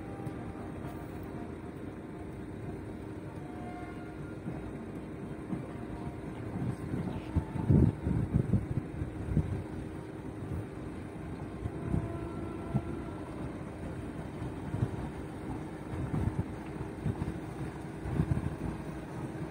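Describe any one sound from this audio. A motorboat engine hums steadily far off across the water.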